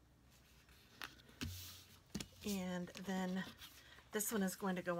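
Stiff paper rustles and taps softly against a table.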